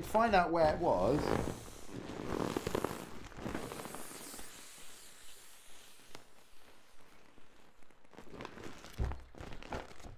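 A plastic wrapper crinkles and rustles in a man's hands.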